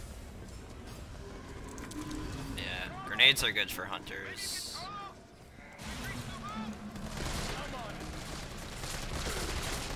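Zombies groan and moan nearby.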